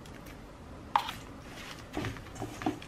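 A spatula stirs and scrapes oats in a metal bowl.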